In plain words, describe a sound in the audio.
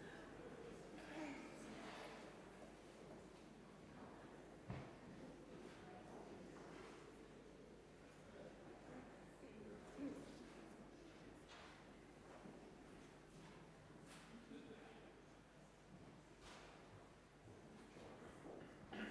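People shift in their seats and rustle softly in a quiet, echoing room.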